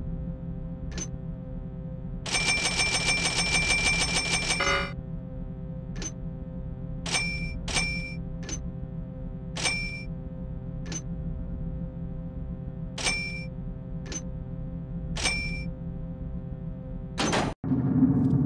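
Menu buttons click sharply, one after another.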